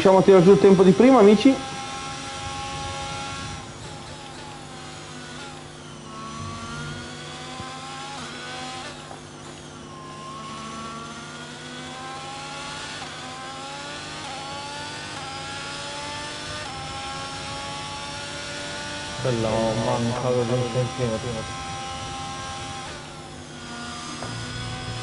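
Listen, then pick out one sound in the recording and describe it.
A racing car engine revs high and shifts up and down through the gears.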